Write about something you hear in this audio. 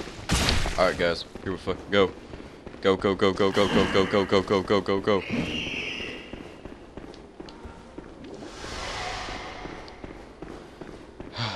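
Footsteps run quickly on a stone floor.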